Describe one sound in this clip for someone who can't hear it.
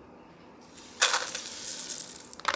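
Powder pours from a packet into a cup with a soft hiss.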